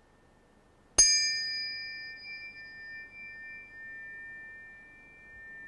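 Two tuning forks are struck together and ring with a clear, sustained tone that slowly fades.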